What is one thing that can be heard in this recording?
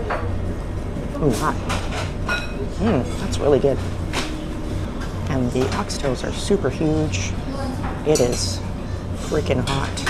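A middle-aged woman talks close by, with animation.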